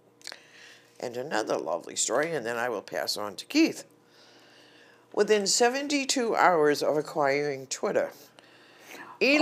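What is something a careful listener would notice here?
An elderly woman speaks calmly into a microphone nearby.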